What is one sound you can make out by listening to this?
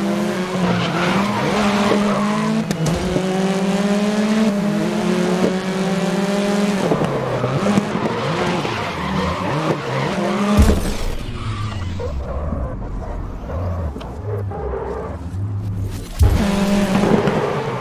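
A racing car engine roars loudly at high revs, shifting up and down through the gears.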